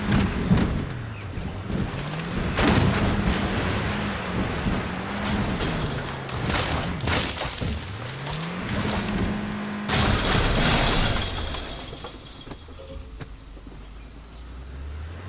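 Tyres rumble and crunch over a rough dirt track.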